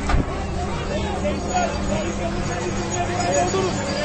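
A bulldozer engine rumbles.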